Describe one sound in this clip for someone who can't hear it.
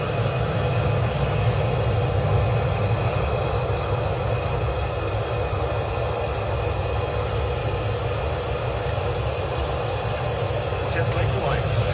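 Metal tongs clink against a crucible.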